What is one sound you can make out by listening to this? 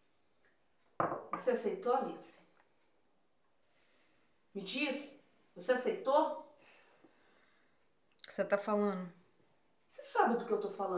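A woman speaks quietly and close by, in short bursts.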